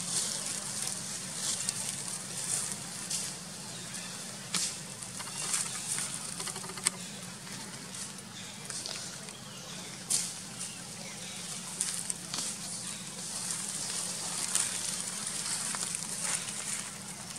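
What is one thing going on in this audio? Dry leaves rustle and crackle as monkeys move over the ground.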